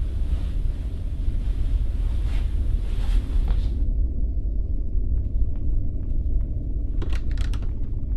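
Footsteps thud on a creaky wooden floor.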